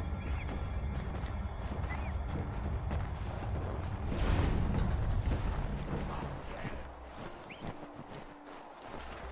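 Footsteps crunch quickly through deep snow.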